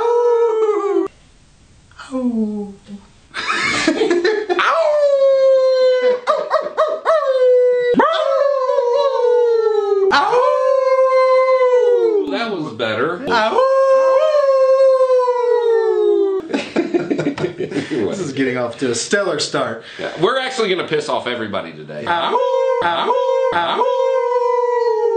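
Men howl loudly like wolves, in long wavering cries.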